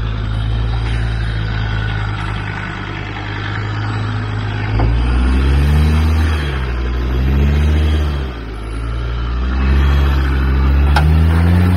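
A four-wheel-drive engine idles low and revs up and down as it climbs over rocks.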